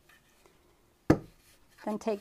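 A plaster mould knocks against a hard surface.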